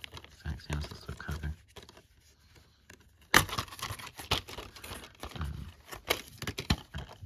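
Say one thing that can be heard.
A plastic disc case clicks and rattles as a hand handles it.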